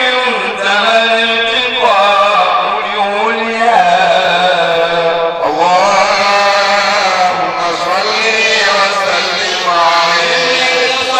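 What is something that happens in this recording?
A young man chants in a long, melodic voice through a microphone, heard over a loudspeaker.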